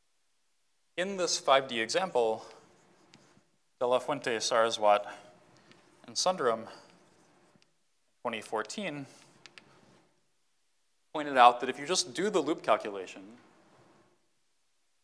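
A man lectures calmly into a microphone, speaking in short phrases with pauses.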